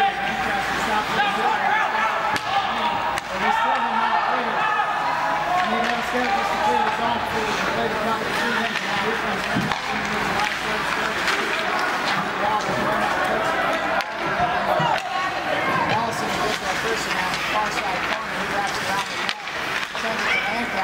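A crowd of spectators chatters close by in a large echoing hall.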